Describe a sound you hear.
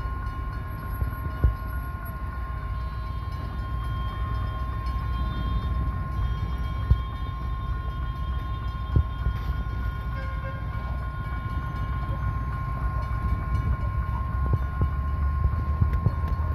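Cars drive past nearby.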